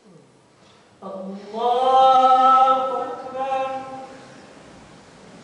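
A man chants a long call through a loudspeaker in a large echoing hall.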